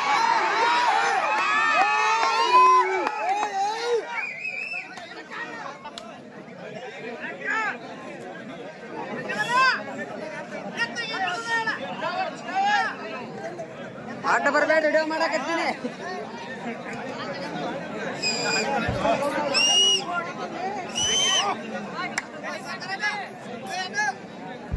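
A crowd of men chatters and shouts outdoors.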